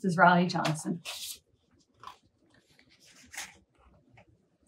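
Pages of a book rustle as they turn.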